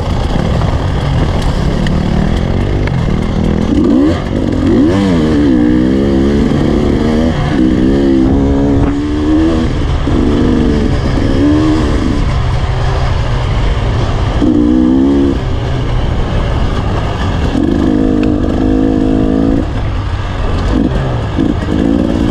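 Wind rushes loudly past, outdoors.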